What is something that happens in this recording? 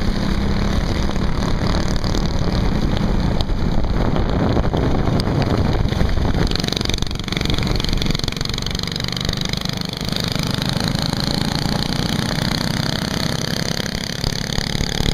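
Small go-kart engines buzz and rattle loudly close by.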